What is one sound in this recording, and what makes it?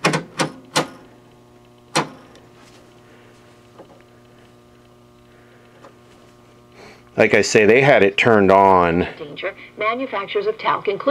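An old television set hums steadily.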